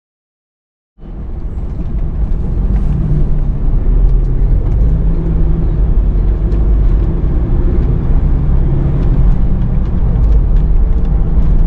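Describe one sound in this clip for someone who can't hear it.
A car engine hums with a low road rumble as the car drives along.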